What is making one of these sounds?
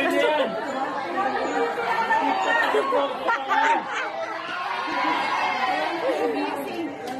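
A crowd of young men and women chatters nearby.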